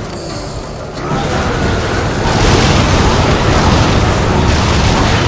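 Monsters roar and growl in a fight.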